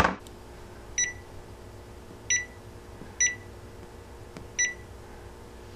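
An oven control panel beeps at each button press.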